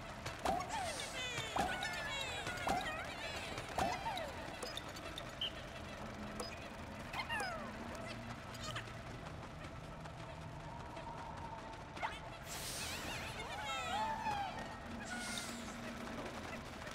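Many tiny creatures chirp and squeak in high little voices.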